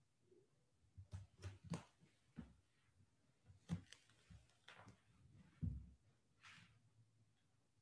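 Fabric rustles and brushes against a mat.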